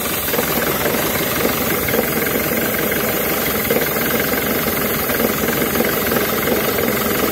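An engine runs loudly close by with a steady, rough clatter.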